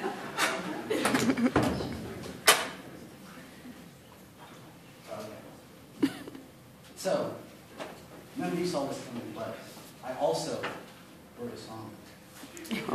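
A young man speaks at a lectern in a room with a slight echo.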